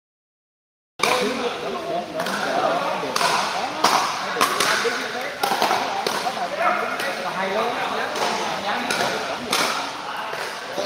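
Paddles strike a plastic ball with sharp hollow pops in an echoing hall.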